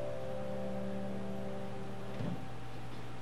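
A piano holds a final chord that rings and fades.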